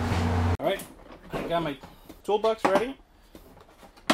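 A hard plastic case thuds onto the floor.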